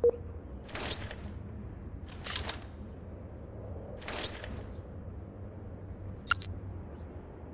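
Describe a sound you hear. Metal clicks and rattles as a grenade is handled.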